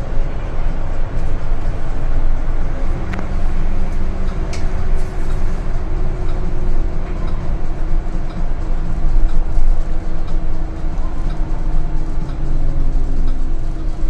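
A bus engine hums steadily from inside as the bus drives along.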